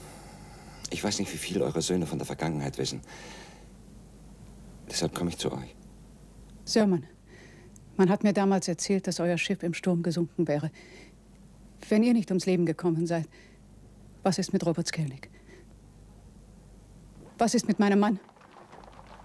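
A man speaks quietly and tensely in a small room.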